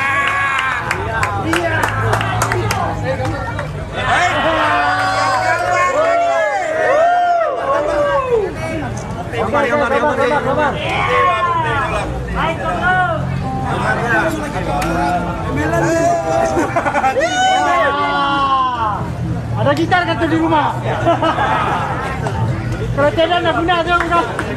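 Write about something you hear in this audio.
An acoustic guitar strums along.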